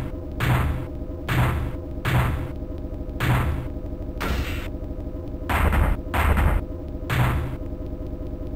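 Punches and kicks land with heavy, repeated thuds.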